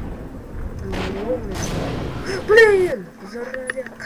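A creature roars with a deep, bending growl.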